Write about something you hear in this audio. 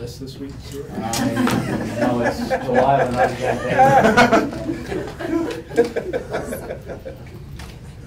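A middle-aged man laughs heartily close to a microphone.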